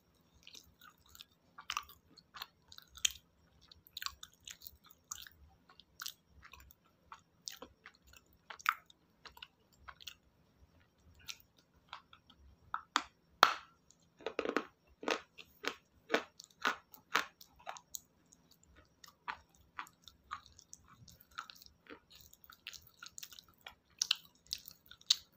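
Wet mouth sounds smack and click close to a microphone.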